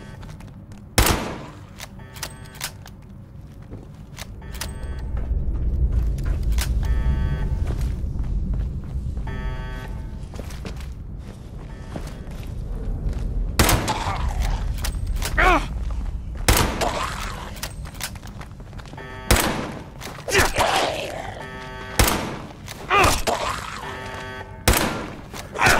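Gunshots bang loudly in an echoing space.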